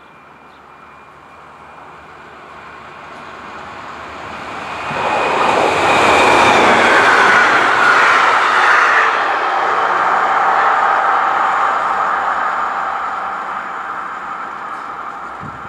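An electric passenger train approaches, rushes past close by and rumbles away into the distance.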